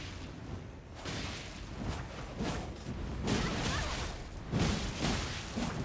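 Swords clash and strike in a fast fight.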